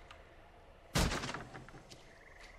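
A wooden door smashes apart with a loud crash.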